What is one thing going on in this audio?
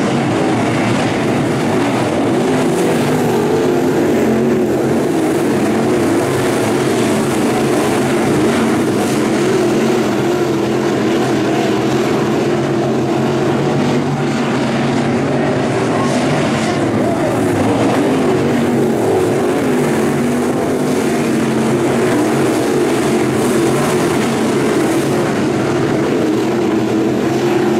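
Race car engines roar loudly around a dirt track, close by and continuous.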